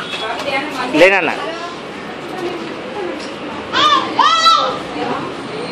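A small child squeals loudly in short high cries.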